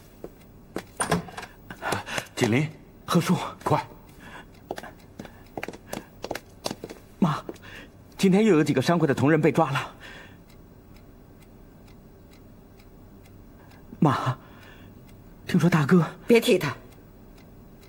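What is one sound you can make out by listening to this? A middle-aged man speaks urgently and with agitation.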